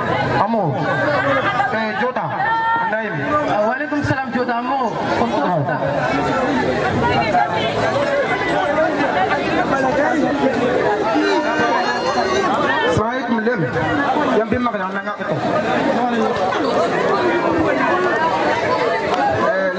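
A crowd murmurs and cheers in the background.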